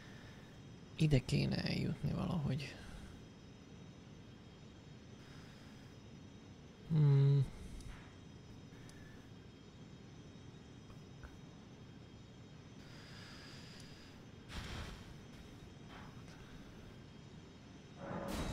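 A young man speaks briefly into a close microphone, in short bursts.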